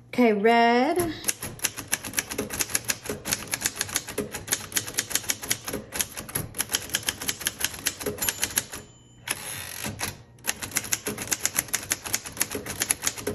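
Typewriter keys clack quickly and steadily.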